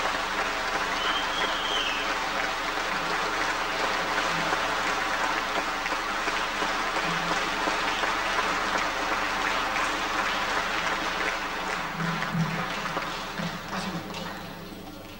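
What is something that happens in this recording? An acoustic guitar is strummed briskly through a loudspeaker system.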